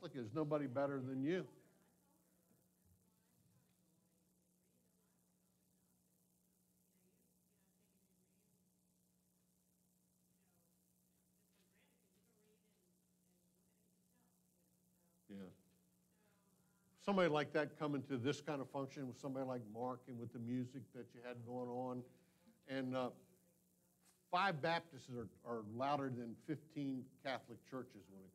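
A man speaks through a microphone in an echoing hall, with long pauses.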